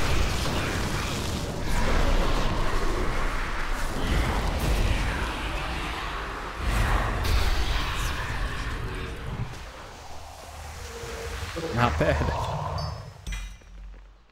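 Magic spells whoosh and crackle in a video game.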